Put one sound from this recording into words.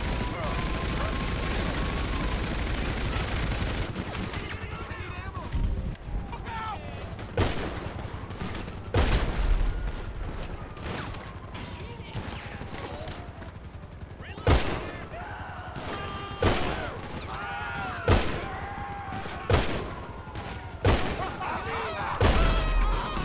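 A helicopter's rotor thuds overhead.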